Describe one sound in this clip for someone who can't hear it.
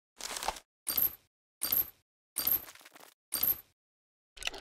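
Metal chains clink and rattle in a game.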